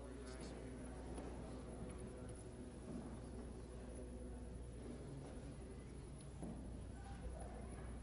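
A group of men chant together in an echoing hall.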